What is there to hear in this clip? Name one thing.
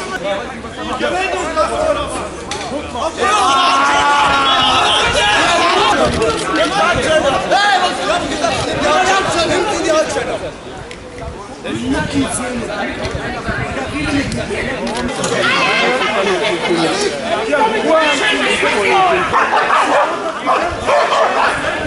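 A large crowd talks and shouts loudly close by.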